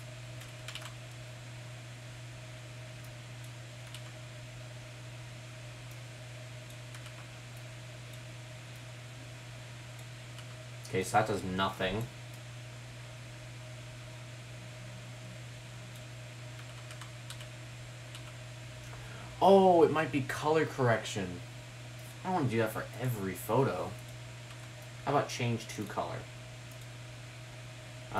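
A computer mouse clicks softly.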